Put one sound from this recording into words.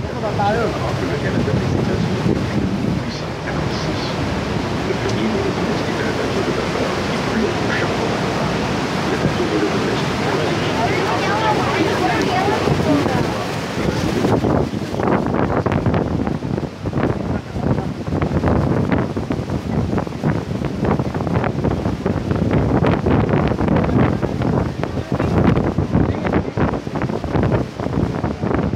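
A huge waterfall roars nearby.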